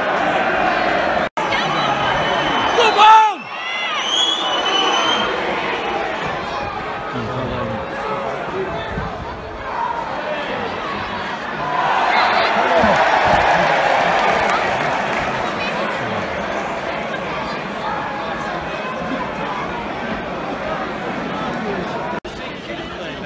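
A large stadium crowd murmurs and chants outdoors.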